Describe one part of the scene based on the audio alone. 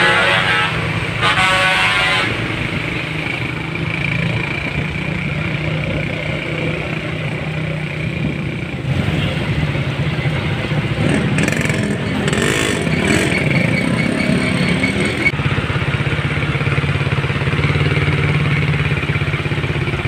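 Truck engines rumble low and steady in slow traffic.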